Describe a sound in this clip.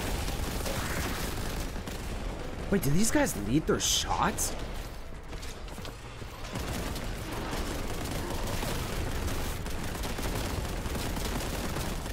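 Fiery explosions burst and roar.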